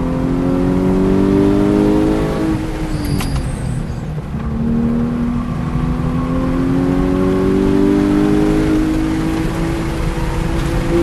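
Wind and road noise rush steadily inside the car.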